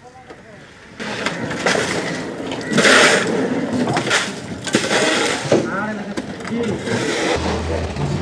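A shovel scrapes and crunches through ice on wet ground.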